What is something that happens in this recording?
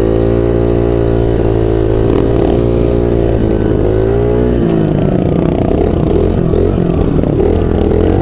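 A dirt bike engine roars loudly close by, its pitch rising and falling.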